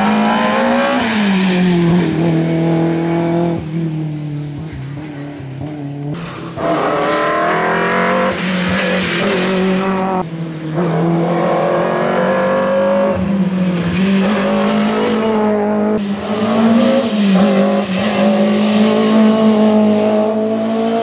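A racing car engine roars and revs as the car speeds through a bend.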